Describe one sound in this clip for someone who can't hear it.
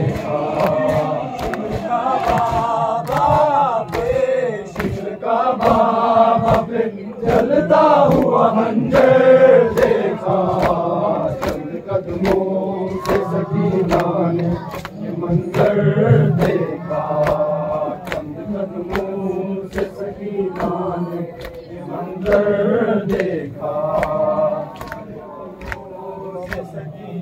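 Men beat their chests in a steady rhythm.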